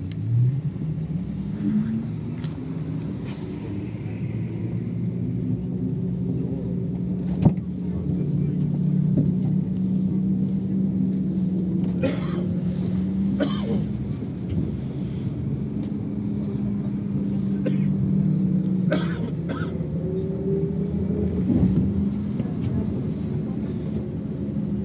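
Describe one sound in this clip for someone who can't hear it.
A vehicle engine hums steadily from inside while driving.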